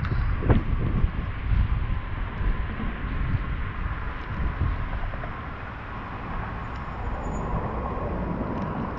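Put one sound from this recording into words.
Bicycle tyres roll on asphalt.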